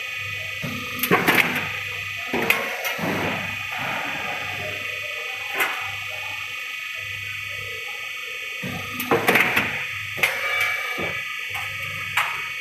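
Metal sheets clank and rattle as they pass through a machine.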